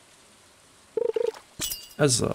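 A short electronic chime sounds as a fish bites.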